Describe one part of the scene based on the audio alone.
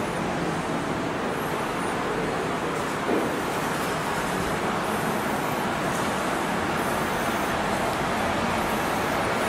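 Footsteps climb concrete stairs.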